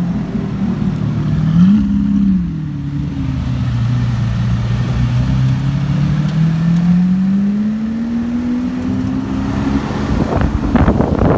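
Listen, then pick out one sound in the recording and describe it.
Another sports car engine revs with a deep roar.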